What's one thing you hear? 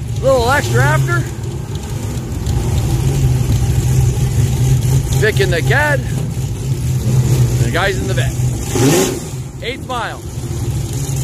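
A car engine revs sharply in short bursts.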